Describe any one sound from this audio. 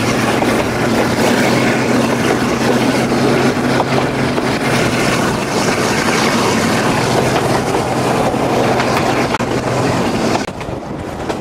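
A diesel locomotive engine drones steadily ahead.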